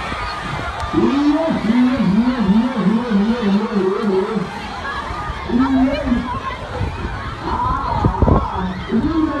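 A man shouts close by with excitement.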